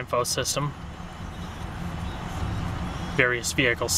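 A dashboard button clicks.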